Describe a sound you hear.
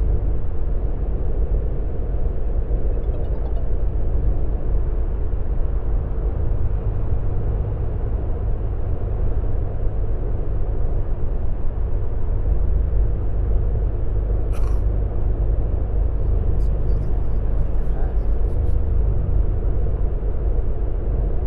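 Tyres roar on a wet road.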